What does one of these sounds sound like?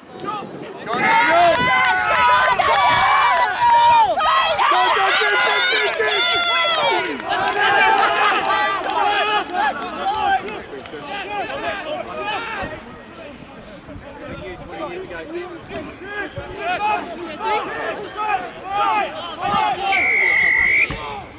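Men shout loudly outdoors, nearby and at a distance.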